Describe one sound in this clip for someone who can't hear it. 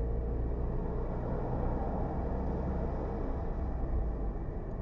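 A truck's engine rumbles close by as it is passed.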